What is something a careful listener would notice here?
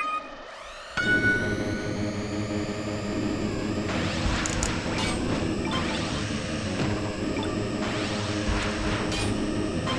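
Racing engines roar loudly as they speed away.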